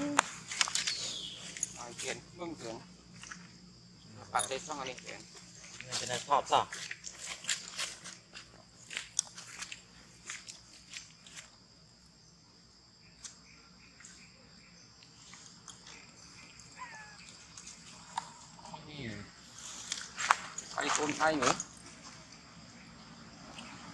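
Monkeys rustle through dry leaves and grass.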